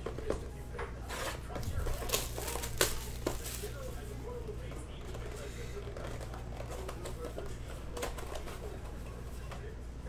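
Plastic wrapping crinkles and tears as a box is opened.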